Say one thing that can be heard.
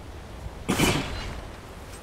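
A fiery magic blast bursts with a loud whoosh.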